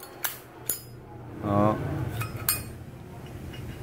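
A metal lighter insert slides out of its case with a faint scrape.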